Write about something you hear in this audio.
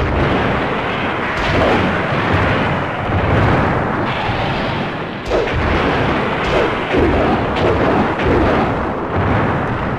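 Blows thud and crash in a fighting game.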